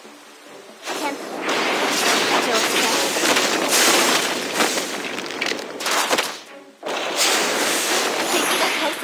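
Magic blasts crackle and burst in quick succession.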